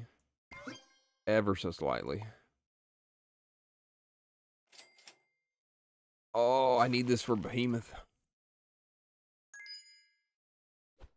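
Short bright chimes ring now and then.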